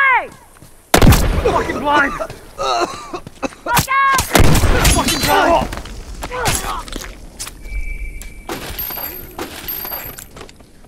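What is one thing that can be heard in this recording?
Heavy blows land in a brawl.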